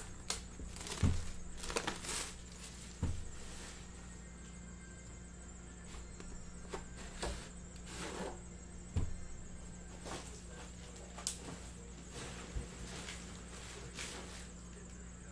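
A cardboard box slides and knocks against a table.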